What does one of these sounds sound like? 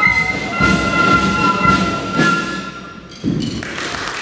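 A flute band plays a tune and ends on a held chord.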